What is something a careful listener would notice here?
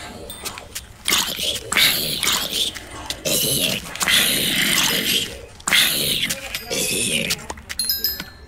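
Zombies groan nearby.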